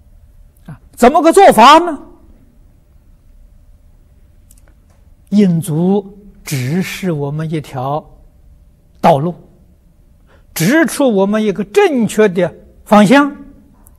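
An elderly man speaks calmly and close to a microphone, with pauses.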